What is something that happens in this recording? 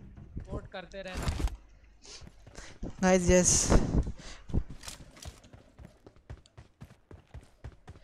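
Quick footsteps patter on dirt and concrete.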